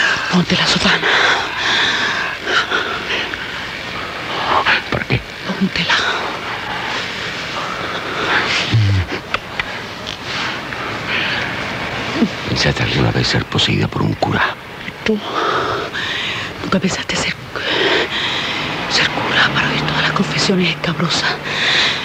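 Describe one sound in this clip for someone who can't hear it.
A woman speaks softly and intimately, close by.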